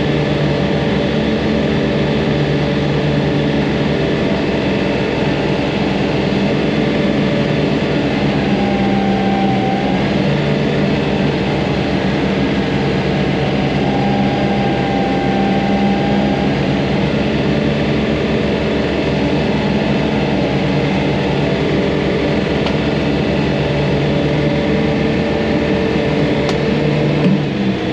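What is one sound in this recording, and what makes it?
A tractor engine rumbles steadily, heard from inside the cab.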